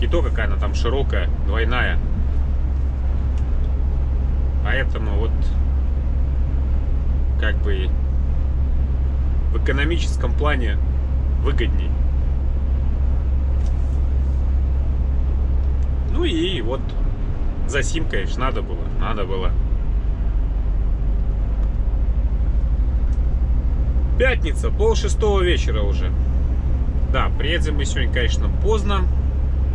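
Tyres hum on a motorway.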